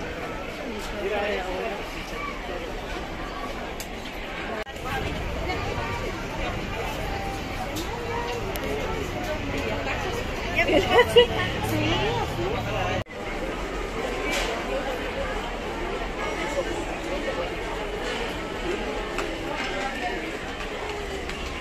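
A crowd of people murmurs and chatters nearby.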